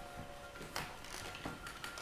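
A man walks with heavy footsteps on a wooden floor.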